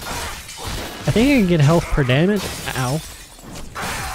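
A blade slashes and strikes a body.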